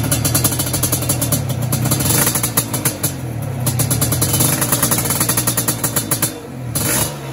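A racing motorcycle engine runs close by at high, steady revs.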